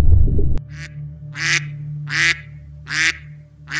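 A duck quacks.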